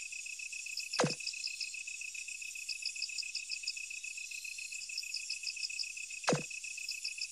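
A soft click sounds as game dialogue advances.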